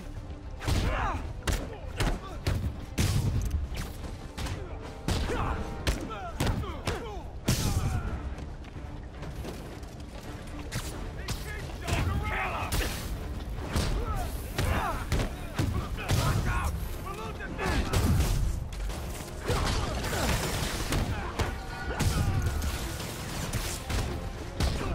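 Punches and kicks land with heavy, quick thuds.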